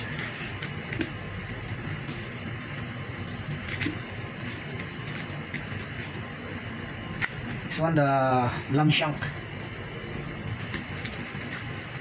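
A knife cuts and scrapes through raw meat with soft taps.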